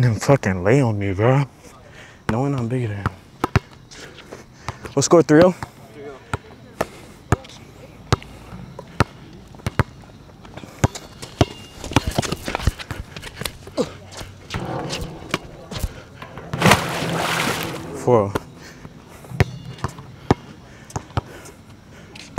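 A basketball bounces sharply on a hard court, over and over.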